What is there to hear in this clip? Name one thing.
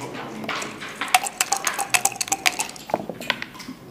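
Dice rattle in a cup.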